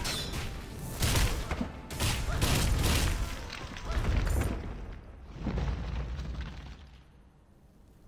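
Weapons clash and magic effects burst loudly in a fight.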